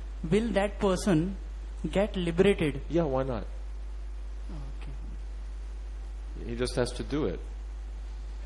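An elderly man speaks calmly into a microphone, in short phrases.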